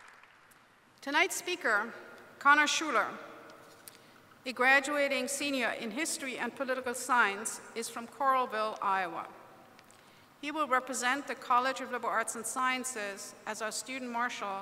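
An elderly woman speaks calmly through a microphone in a large echoing hall.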